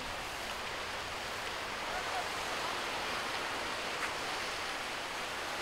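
Waves wash steadily over rocks along the shore.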